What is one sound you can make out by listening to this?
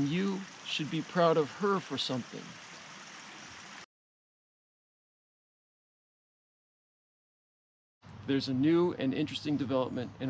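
A young man talks calmly and close to the microphone.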